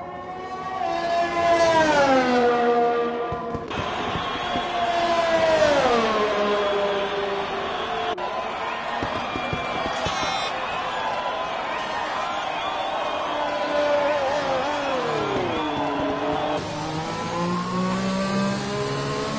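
A racing car engine screams at high revs and drops in pitch as it slows.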